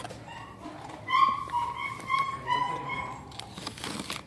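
A dog whines in a high voice.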